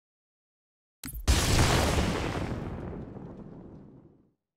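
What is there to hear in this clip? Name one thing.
A deep rushing roar from a video game bursts in and slowly fades.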